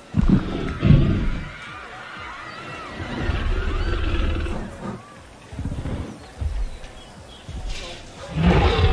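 Heavy footsteps of a large dinosaur thud on the ground.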